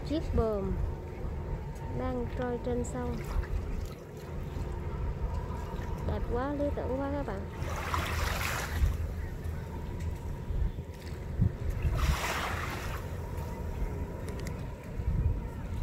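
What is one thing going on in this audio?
Water gently laps against moored boats.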